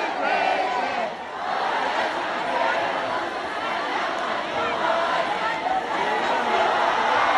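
A performer sings through loudspeakers.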